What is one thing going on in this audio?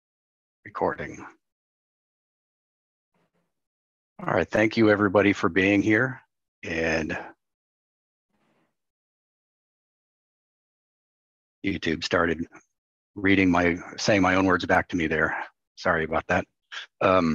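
A middle-aged man speaks calmly over an online call, with pauses.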